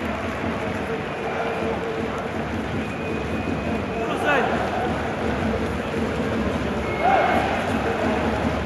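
A huge stadium crowd chants and sings loudly, echoing around the arena.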